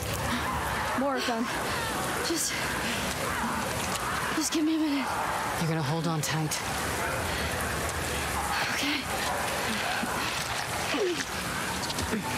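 A girl speaks weakly in a pained voice.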